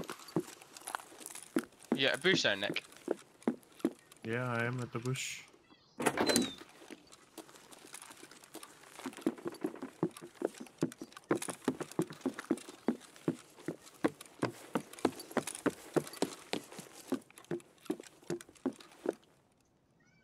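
Footsteps thud on a wooden floor indoors at a steady walking pace.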